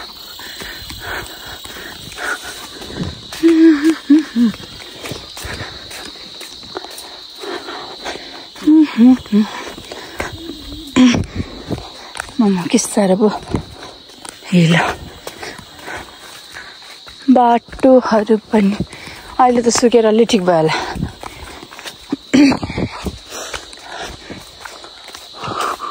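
Footsteps crunch on a dirt path.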